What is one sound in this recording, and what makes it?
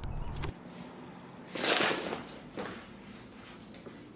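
Paper rustles as an envelope is handled.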